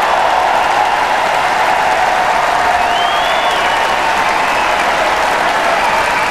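A large crowd cheers loudly in a big echoing hall.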